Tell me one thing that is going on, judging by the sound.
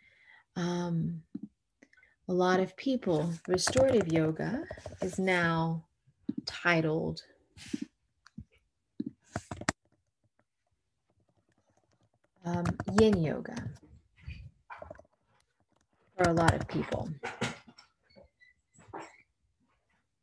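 A young woman speaks calmly through an online call microphone, in bursts with pauses.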